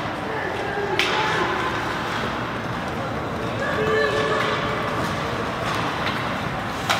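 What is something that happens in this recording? A hockey stick strikes the puck with a sharp crack.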